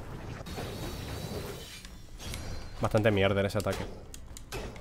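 A magical beam blasts with a loud roaring whoosh.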